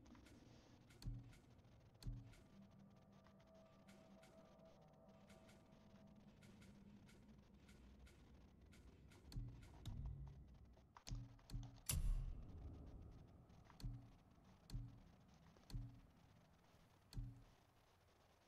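Soft menu clicks and thuds sound as selections change.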